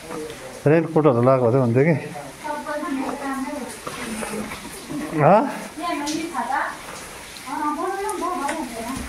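A child calls out loudly, echoing in a cave.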